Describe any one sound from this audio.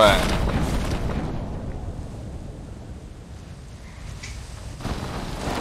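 Wind rushes steadily and slowly fades.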